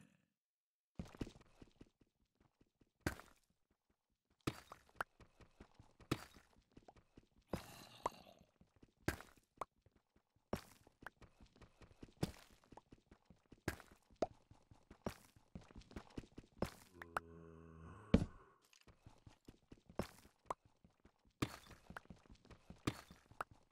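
A pickaxe chips and breaks stone blocks in quick repeated knocks.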